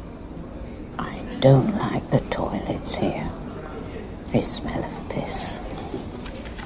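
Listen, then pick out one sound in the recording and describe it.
An elderly woman speaks softly and earnestly, close by.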